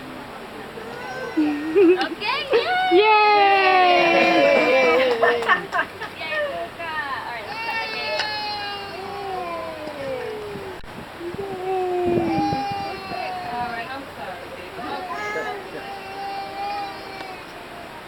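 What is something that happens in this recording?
A group of adults and children sing together nearby, loud at first and then quieter.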